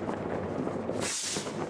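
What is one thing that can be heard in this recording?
A firework bangs loudly.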